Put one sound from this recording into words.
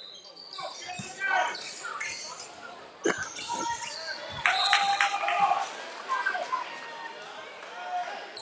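A basketball bounces on the court with dull thuds.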